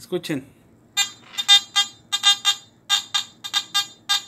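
A metal detector beeps in short rapid bursts.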